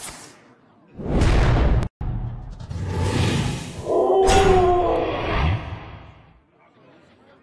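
A magical ice spell whooshes and crackles.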